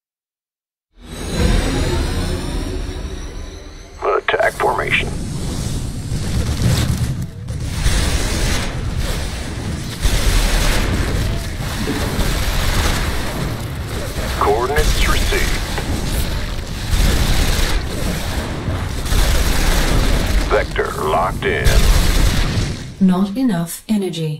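Rapid gunfire and explosions rumble in a battle.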